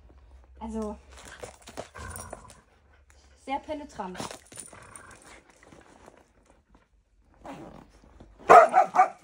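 A dog whines in short high cries.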